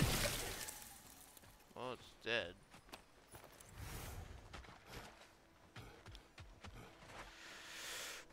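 Heavy footsteps crunch on stone and grass.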